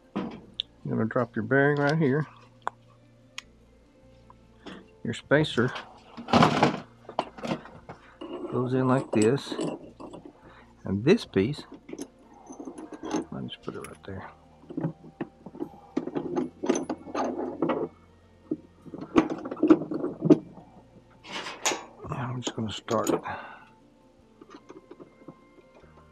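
Small metal parts clink and scrape together.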